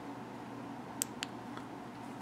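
A metal flashlight clicks and taps lightly.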